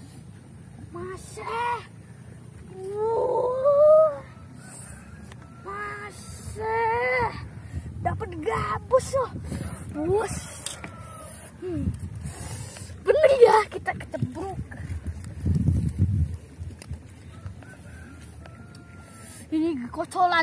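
A young boy talks and shouts excitedly close by.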